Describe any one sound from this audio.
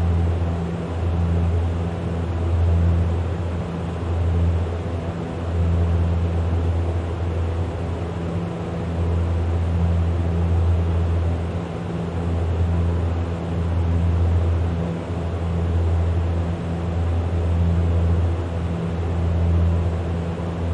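A turboprop engine drones steadily with a low, pulsing hum.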